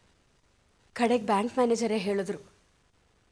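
A middle-aged woman speaks close by.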